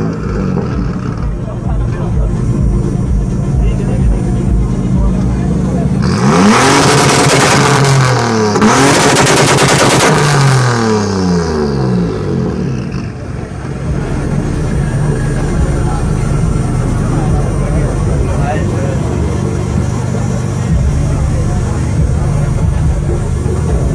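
A car engine idles with a deep, rumbling burble close by.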